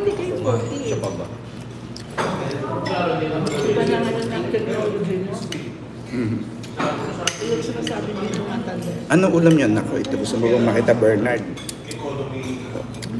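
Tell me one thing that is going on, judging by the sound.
A man talks casually close to the microphone.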